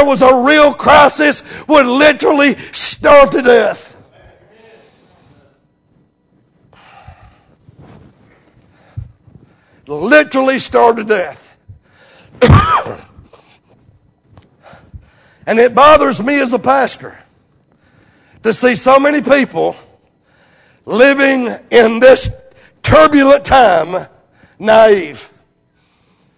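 A middle-aged man preaches loudly and with animation through a microphone in an echoing hall.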